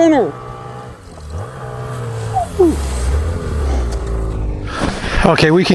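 A snowmobile engine hums and revs.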